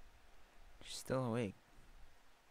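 A young man lets out a short exclamation close to a microphone.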